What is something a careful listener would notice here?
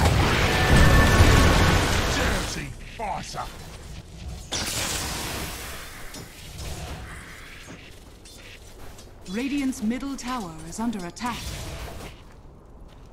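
Magic blasts and weapon hits clash in a fight.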